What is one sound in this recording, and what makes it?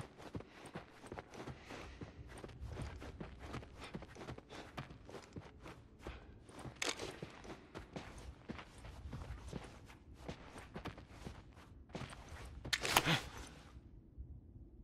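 Footsteps thud across a wooden floor indoors.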